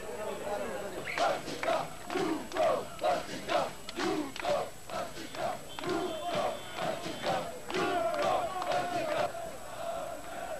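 A crowd chants loudly in rhythm.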